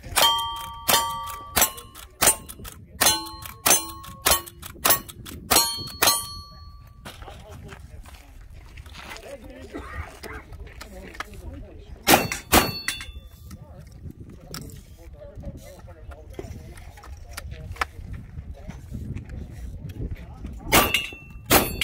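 A rifle lever clacks as it is worked between shots.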